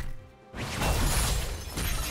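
Magical spell effects whoosh and crackle.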